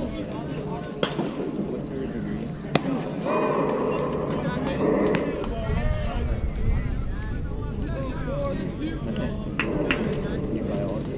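Players call out from across an open field.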